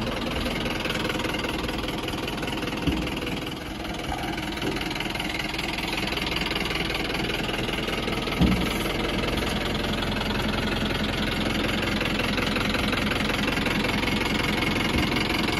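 A hydraulic lift whines as a truck's dump bed rises.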